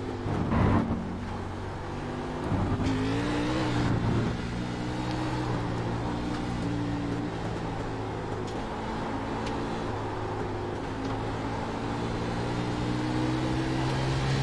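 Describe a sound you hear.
A race car engine drones loudly, its pitch rising and falling through gear changes.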